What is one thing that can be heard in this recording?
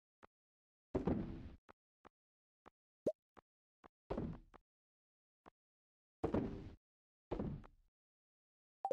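Items drop into a shipping bin with thuds.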